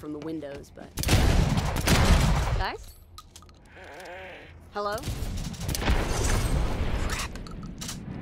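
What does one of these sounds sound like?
A shotgun fires loud booming blasts.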